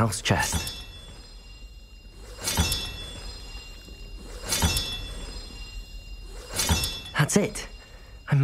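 A metal mechanism clunks and clicks repeatedly.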